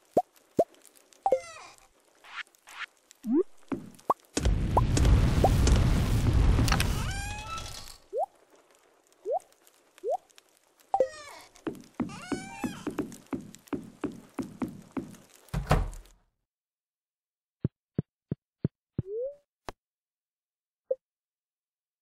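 Short video game menu clicks and pops sound.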